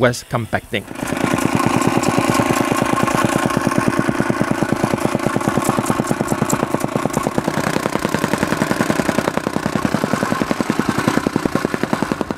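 A gas-powered rammer pounds rapidly and roars.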